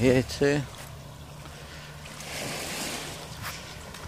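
Small waves wash gently onto a pebble shore.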